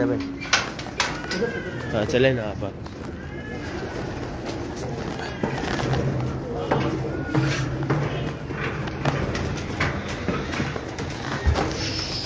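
Small birds chirp and call nearby.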